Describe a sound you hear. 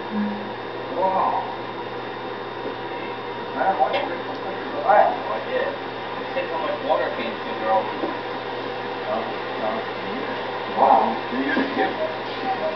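An elderly man talks casually nearby.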